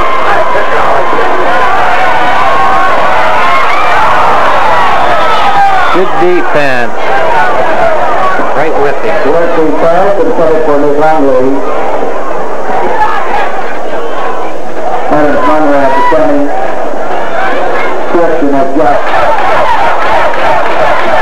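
A crowd of spectators cheers and chatters loudly outdoors.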